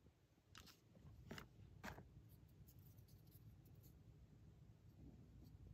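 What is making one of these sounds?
Wooden craft sticks clatter and click against each other.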